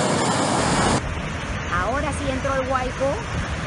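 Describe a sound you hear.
Sea waves break on a shore.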